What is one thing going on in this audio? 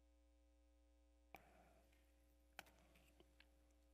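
A man drinks from a glass.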